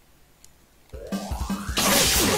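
An electric guitar blares out loudly with a rising screech.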